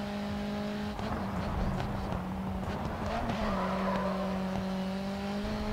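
Tyres squeal as a race car slides through a corner.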